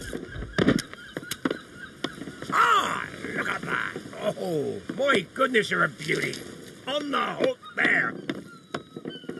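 A cartoon man shouts gruffly.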